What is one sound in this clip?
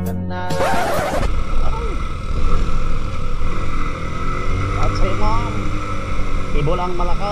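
A scooter engine hums steadily nearby.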